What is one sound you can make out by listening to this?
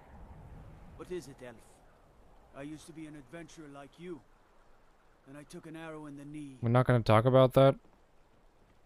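A man speaks calmly in a gruff voice.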